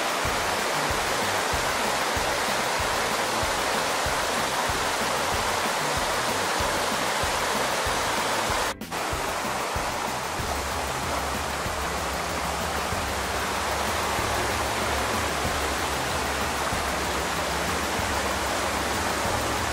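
Water rushes and splashes steadily over rocks outdoors.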